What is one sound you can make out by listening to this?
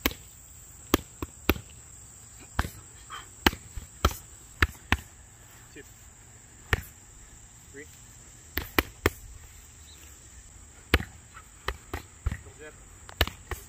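Boxing gloves smack sharply against punch mitts in quick bursts.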